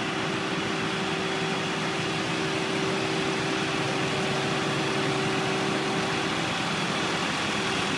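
A steady traffic hum fills a city street outdoors.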